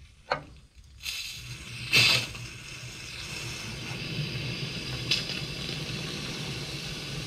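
Water rushes steadily from a hose into a radiator.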